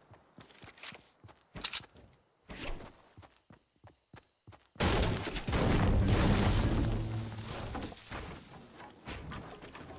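Wooden panels snap into place with quick clattering knocks.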